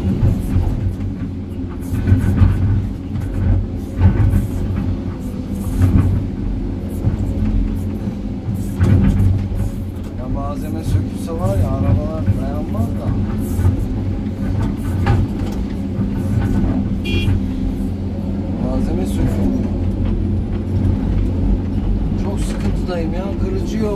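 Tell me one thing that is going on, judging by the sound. A heavy diesel engine rumbles steadily up close.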